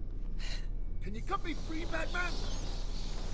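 A young man talks into a microphone nearby.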